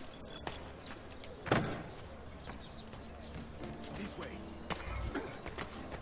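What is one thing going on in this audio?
Footsteps run across roof tiles.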